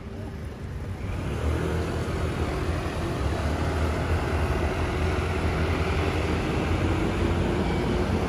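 Motor scooters hum past close by.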